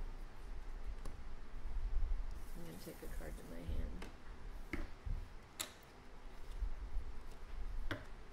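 Cards slide and tap on a wooden table.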